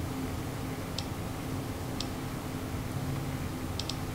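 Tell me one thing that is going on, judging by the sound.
A short game menu click sounds as the selection moves.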